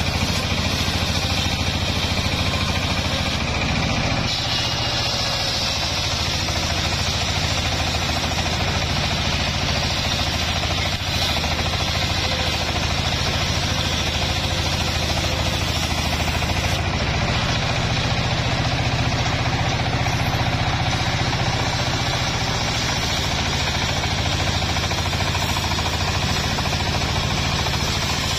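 A diesel engine runs steadily with a loud chugging drone.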